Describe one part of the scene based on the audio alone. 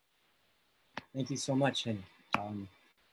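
A second man speaks calmly over an online call.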